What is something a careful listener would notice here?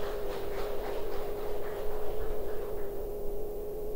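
A crowd of women claps.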